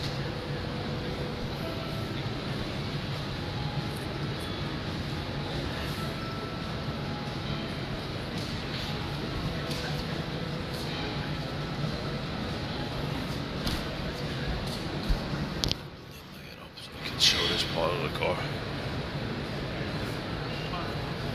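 Distant crowd chatter murmurs through a large echoing hall.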